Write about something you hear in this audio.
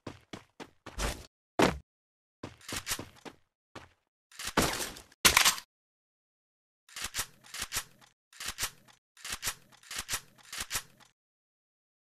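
Gunshots fire in short, rapid bursts.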